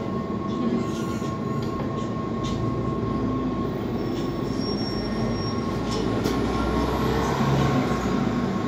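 A bus engine rumbles as the bus drives past close by.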